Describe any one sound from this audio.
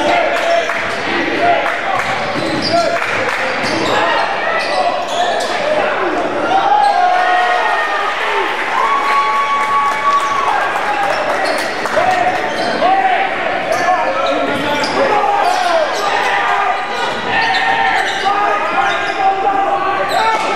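A basketball bounces on the court in quick thuds.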